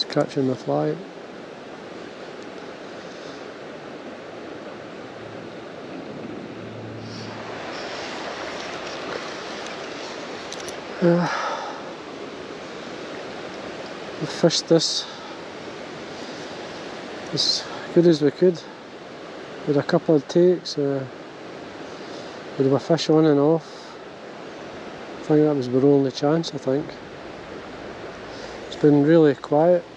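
A river flows and ripples gently nearby.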